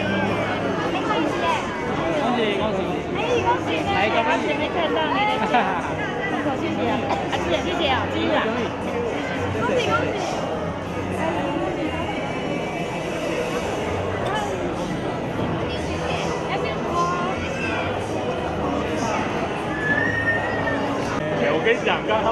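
A large crowd of men and women chatters and laughs loudly all around.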